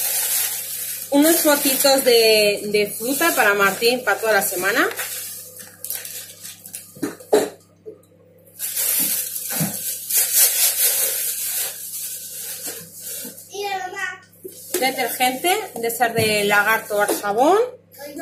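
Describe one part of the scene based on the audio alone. Cardboard packaging rattles as it is handled.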